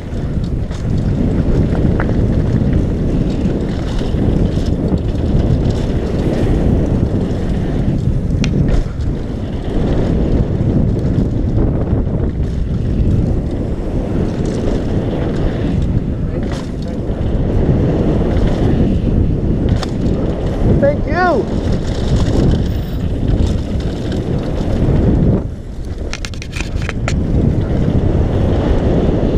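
Wind rushes past loudly as a bike speeds downhill.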